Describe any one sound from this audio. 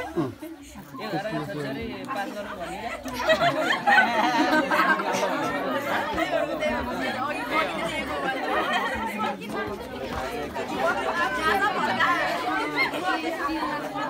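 A group of young men and women sing together close by.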